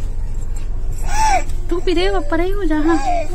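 A toddler squeals and babbles up close.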